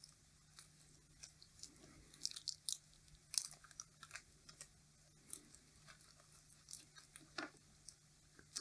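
Plastic tape crinkles and rustles between fingers.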